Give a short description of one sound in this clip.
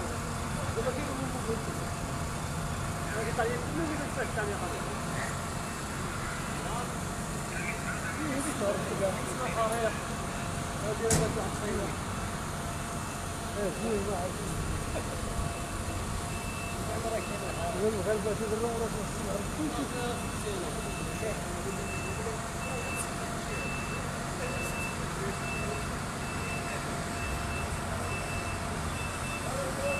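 Men talk nearby in calm, scattered voices.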